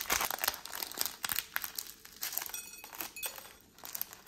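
A plastic snack wrapper tears open.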